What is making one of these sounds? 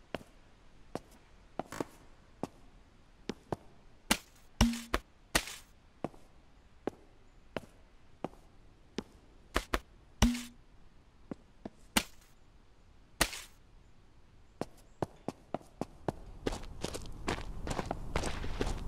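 Footsteps thud on wooden boards at a steady walking pace.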